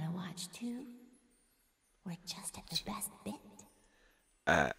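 A young woman speaks softly and calmly.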